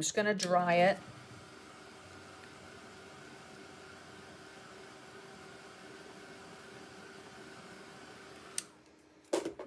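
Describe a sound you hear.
A hair dryer blows with a steady whirring hum.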